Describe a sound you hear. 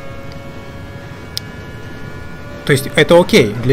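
A racing car engine drones steadily.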